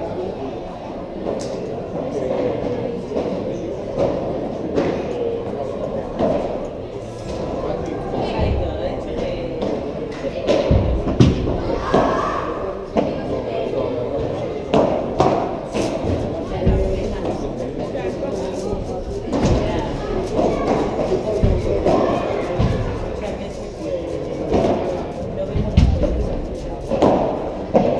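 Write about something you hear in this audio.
Padel rackets hit a ball with sharp pops.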